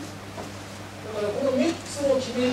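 An older man speaks calmly into a microphone, heard over a loudspeaker.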